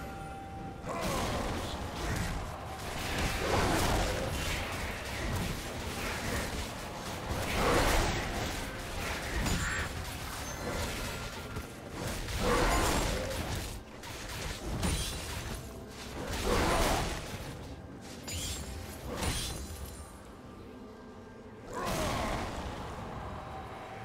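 Magic blasts crackle and whoosh in a rapid fight.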